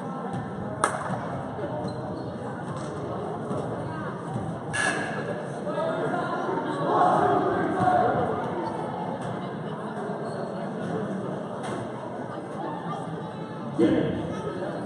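A crowd of young players and spectators chatter and call out in a large echoing gym.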